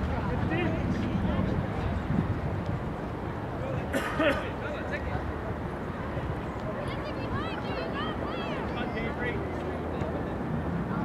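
Young players shout and call out in the distance.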